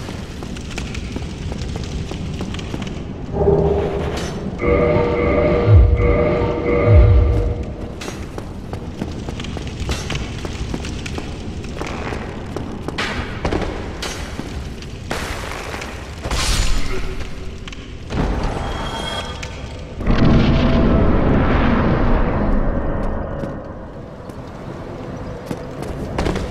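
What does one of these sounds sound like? Footsteps run across stone floors and up stone stairs.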